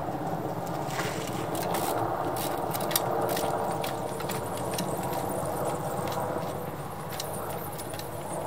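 A bicycle's tyres knock and tap as a rider hops along a wooden ramp.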